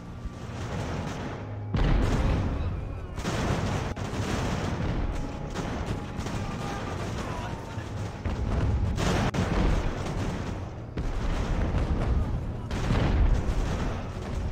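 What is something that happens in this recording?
Musket volleys crackle and rumble across a battlefield.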